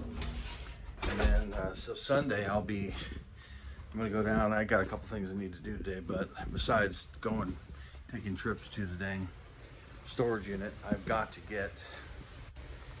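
A middle-aged man talks calmly close to a phone microphone.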